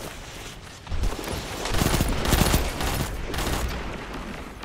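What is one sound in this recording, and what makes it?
Gunfire from an energy rifle crackles in rapid bursts.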